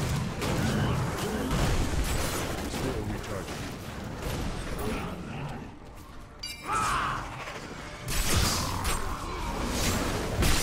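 Video game combat sound effects crash and thud.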